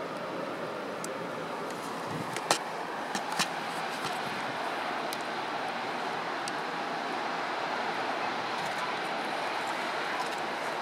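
Waves wash steadily onto a shore.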